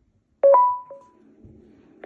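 An electronic game chimes briefly.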